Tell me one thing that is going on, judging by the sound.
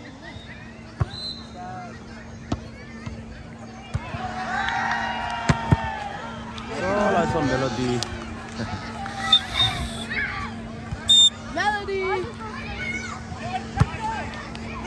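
A volleyball thumps off a player's arms.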